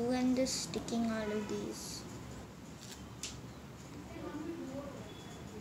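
A young girl speaks calmly nearby.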